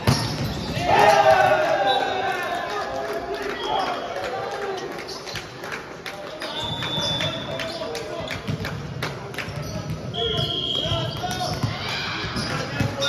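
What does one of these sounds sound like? Several men shout and call out to each other in a large echoing hall.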